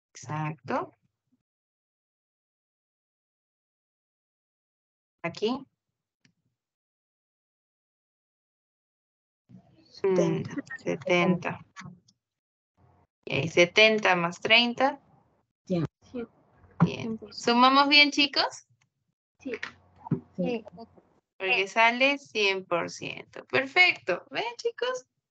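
A young woman speaks calmly through an online call microphone, in short bursts with pauses.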